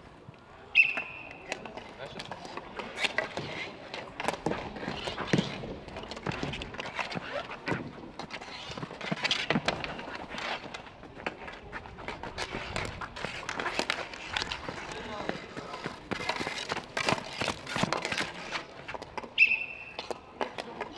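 Street hockey sticks clack against each other and tap a ball on a plastic tile court outdoors.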